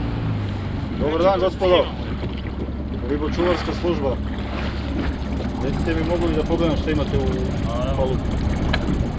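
A man speaks calmly nearby, outdoors.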